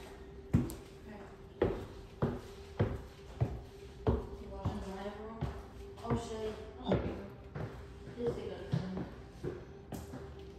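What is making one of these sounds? Footsteps thud up wooden stairs.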